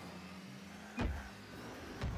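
A car strikes a ball with a loud thump.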